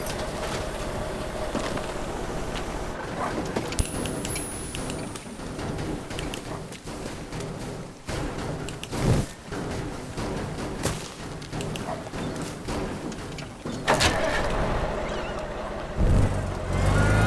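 A heavy crane truck engine rumbles.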